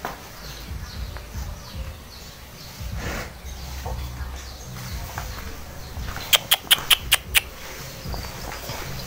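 A cow's hooves shuffle on straw.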